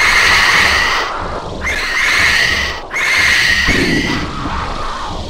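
A jet engine roars loudly in bursts.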